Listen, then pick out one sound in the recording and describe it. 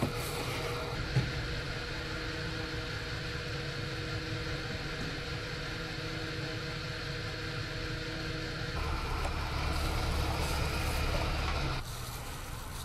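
A fuel pump hums steadily as fuel flows into a tank.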